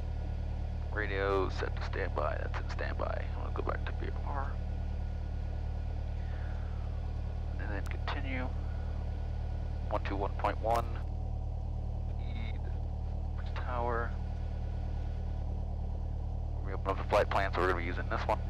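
A man speaks calmly over a headset intercom.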